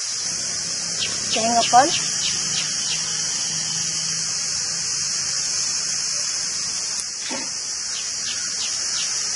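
A metal cup clinks against metal pots.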